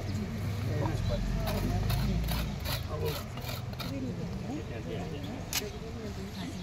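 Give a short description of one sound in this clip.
A brick knocks against other bricks as it is set down.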